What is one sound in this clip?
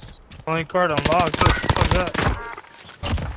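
Gunshots crack from a rifle.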